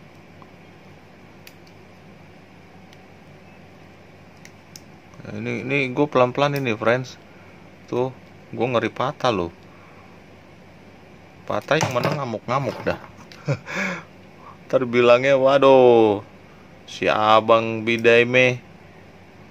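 Small plastic parts click and rub together as they are fitted.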